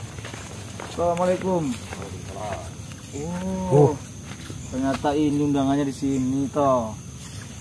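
A young man speaks loudly nearby.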